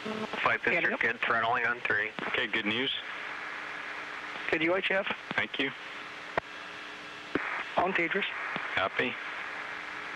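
A man speaks calmly over a radio loudspeaker.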